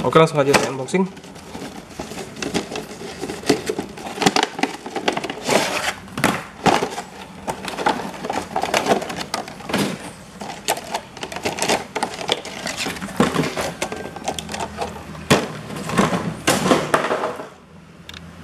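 Plastic packaging crinkles and crackles close by.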